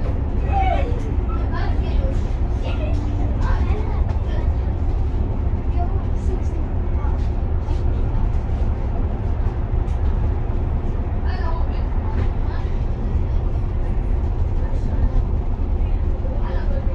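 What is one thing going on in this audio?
Traffic rushes past on a busy road.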